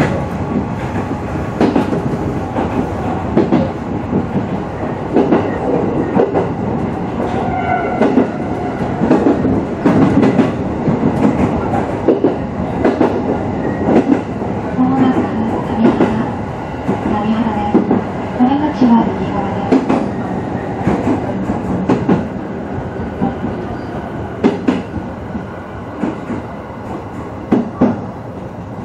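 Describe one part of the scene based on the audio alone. Train wheels click and clatter over rail joints.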